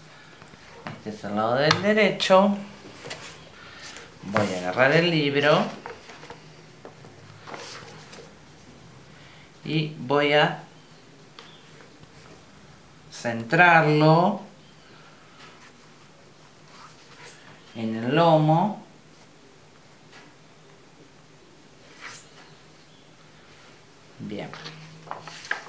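Stiff paper rustles and slides under a hand.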